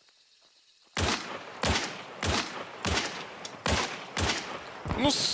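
A pistol fires a series of sharp, loud shots that echo outdoors.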